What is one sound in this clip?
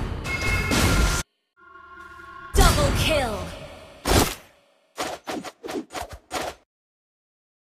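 Game sound effects of spells and hits burst in quick succession.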